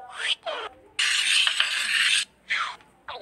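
A marker scribbles rapidly across a board.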